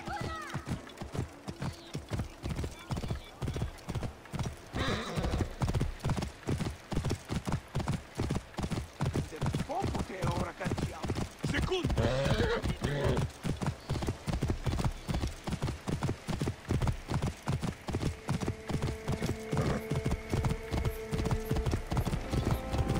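A horse gallops, its hooves pounding on a cobbled road.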